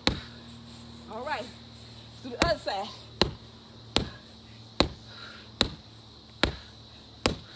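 Fists thump steadily and repeatedly against a heavy punching bag.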